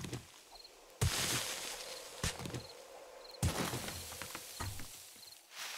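A pick scrapes and chips into dirt.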